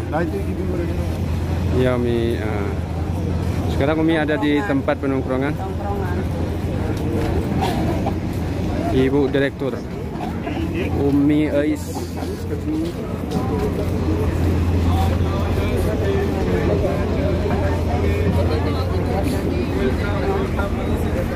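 A crowd murmurs outdoors.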